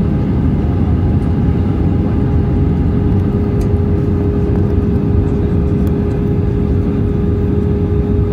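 Jet engines roar steadily with a low rumble and a constant whine.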